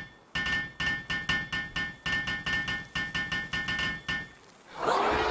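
A hammer taps rapidly and steadily.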